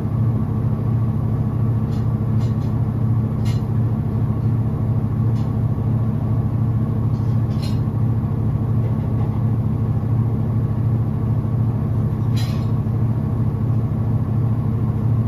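A washing machine drum turns with a steady low hum.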